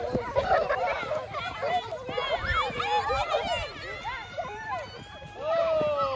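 Children's feet thud on grass as they run.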